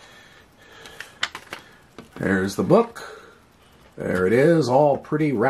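Stiff paper cards rustle and tap as they are handled.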